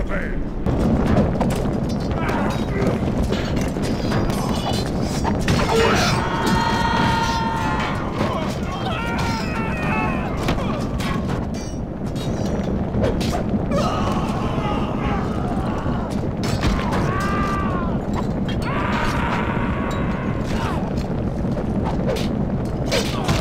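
Swords clash and clang in a loud battle.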